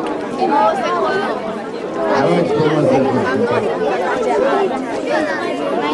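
Children and adults chatter nearby.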